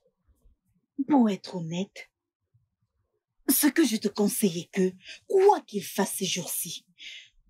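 A woman speaks emotionally, close by.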